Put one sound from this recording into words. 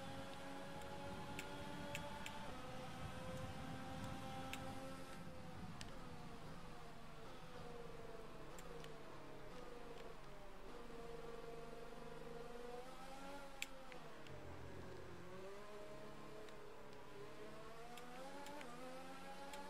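A racing car engine whines at high revs, then drops in pitch as it slows for corners and rises again as it speeds up.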